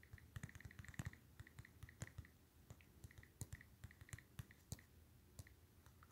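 Soft tapping clicks sound as keys are typed on a phone.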